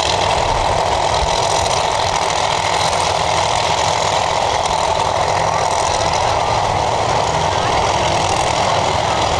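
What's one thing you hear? A race car engine rumbles loudly at a rough, steady idle close by.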